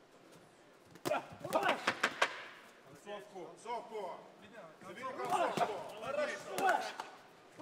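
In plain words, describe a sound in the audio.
Gloved punches thud and slap against a body.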